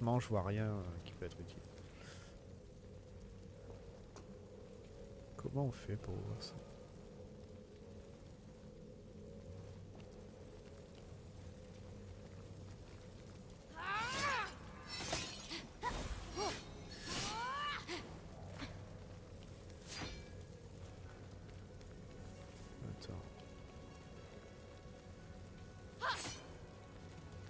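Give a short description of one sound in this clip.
A fire crackles softly in a brazier.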